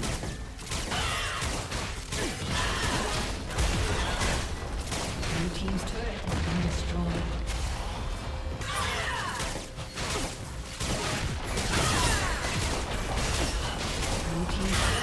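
Magic blasts and hits crackle and boom in a fast game battle.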